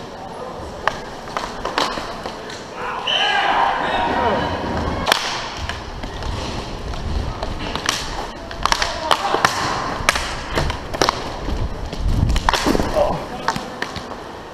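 Hockey sticks click and slap against a puck.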